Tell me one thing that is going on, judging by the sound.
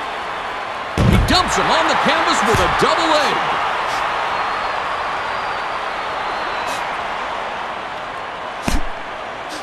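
Heavy punches land with dull thuds.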